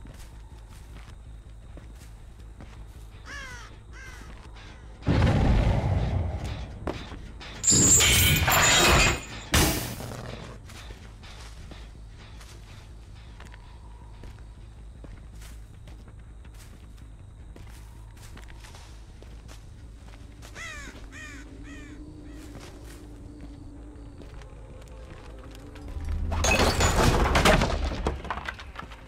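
Footsteps crunch quickly on dry ground.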